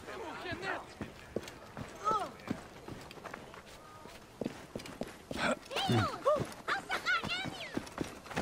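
Footsteps run quickly over dirt and sand.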